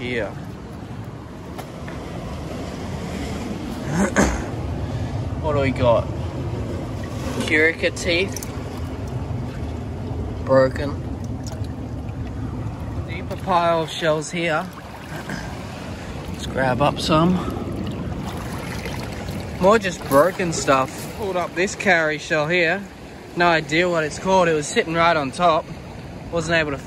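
Shallow water trickles gently over stones.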